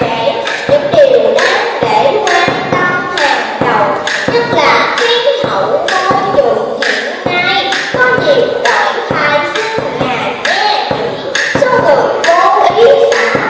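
A child sings into a microphone through loudspeakers, with a bending, wavering voice.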